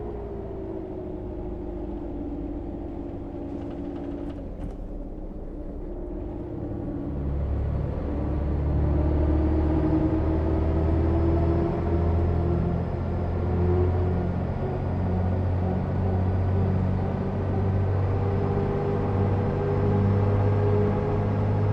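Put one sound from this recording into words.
A bus engine hums steadily and grows louder as the bus speeds up.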